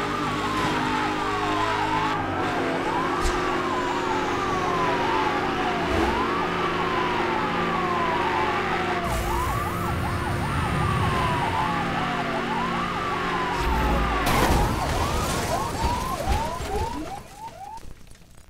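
A police siren wails in quick repeated sweeps.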